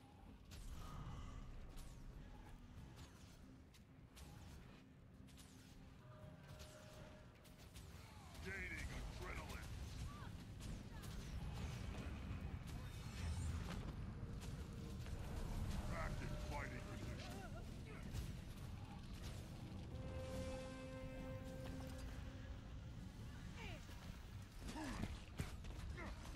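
Weapons clash and magic blasts burst in a hectic fight.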